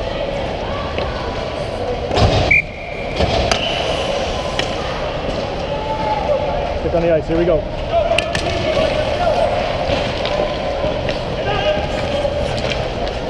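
Ice skates scrape and hiss across the ice close by.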